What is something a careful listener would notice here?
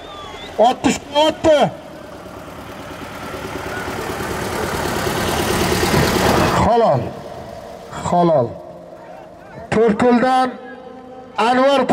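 A man shouts loudly close by.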